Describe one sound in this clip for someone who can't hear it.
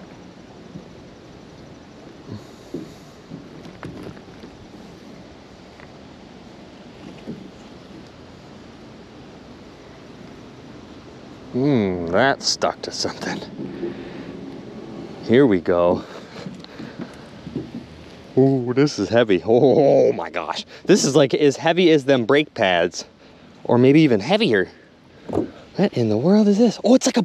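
Water laps gently outdoors.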